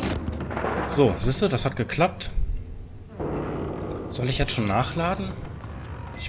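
A young man talks excitedly, close to a microphone.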